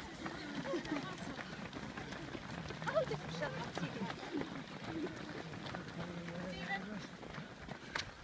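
Many runners' footsteps patter on a paved path.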